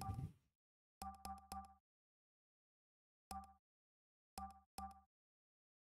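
Short electronic ticks click as a menu slider is nudged step by step.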